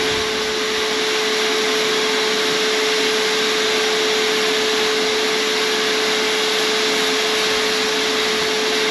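A spray gun hisses steadily.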